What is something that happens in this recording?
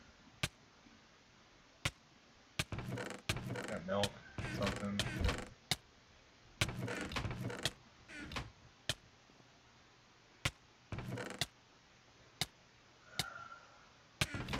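A wooden chest creaks open and thuds shut.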